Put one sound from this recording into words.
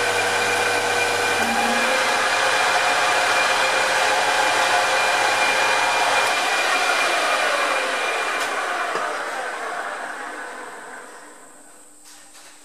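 A lathe motor whirs loudly, then winds down and fades.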